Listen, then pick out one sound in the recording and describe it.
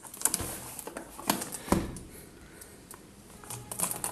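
Plastic wrap crinkles and rustles as hands peel it off.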